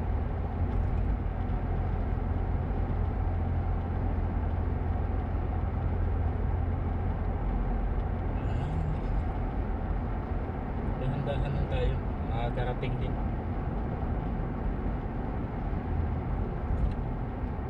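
A car engine hums steadily from inside the moving car.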